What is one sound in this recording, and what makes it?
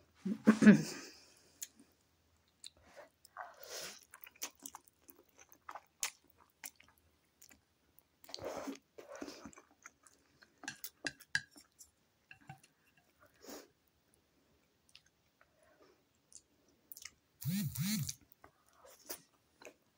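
A woman chews food with wet, smacking sounds close by.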